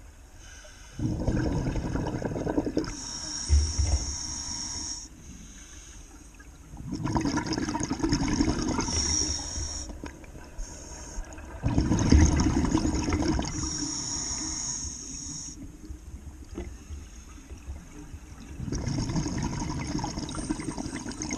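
A scuba diver breathes out through a regulator, sending up loud gurgling bursts of bubbles again and again.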